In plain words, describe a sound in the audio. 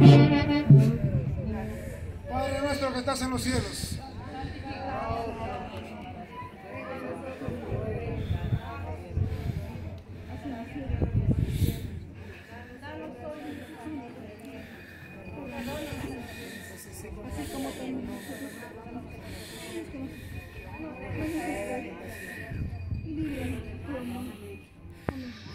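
A crowd of men and women murmur and talk outdoors.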